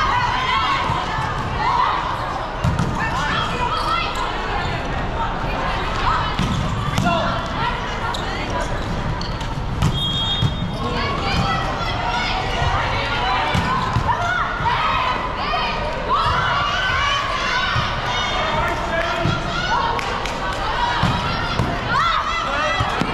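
A volleyball is struck with sharp slaps, again and again.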